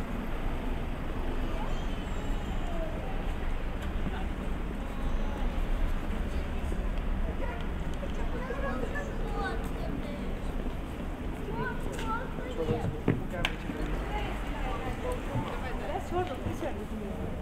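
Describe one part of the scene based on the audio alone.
Men and women chat and murmur nearby in a busy outdoor street.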